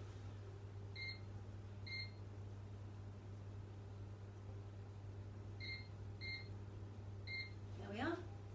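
Oven controls beep in short, high electronic beeps.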